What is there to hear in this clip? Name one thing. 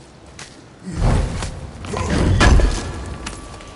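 A heavy wooden chest lid thuds and creaks open.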